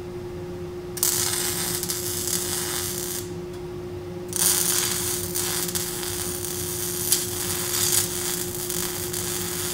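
An arc welder crackles and hisses in sharp bursts.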